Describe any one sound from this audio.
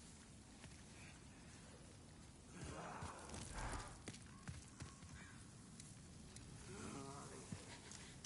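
Armored footsteps clank on stone.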